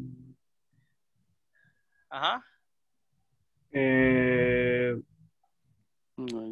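A man speaks in short bursts over an online call.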